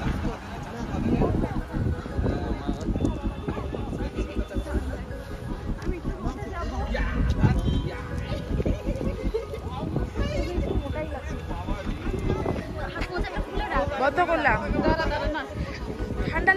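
Young women chat and laugh close by.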